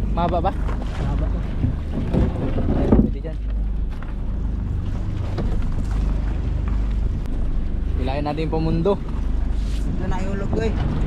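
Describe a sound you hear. A boat's engine hums steadily throughout.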